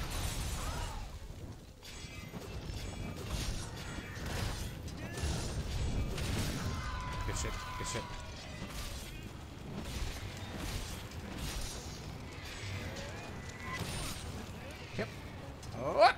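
Heavy thuds rumble as a large creature moves.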